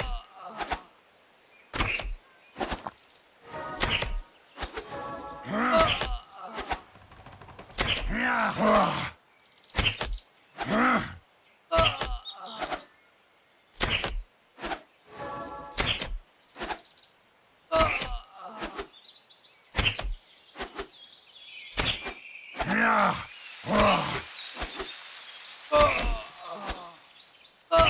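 Short computer game sound effects play during a fight.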